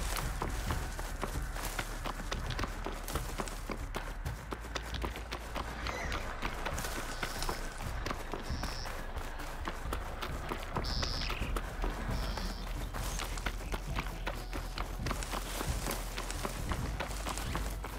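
Footsteps crunch quickly over dry ground and gravel.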